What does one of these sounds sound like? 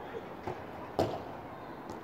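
A soccer ball is kicked with a thud.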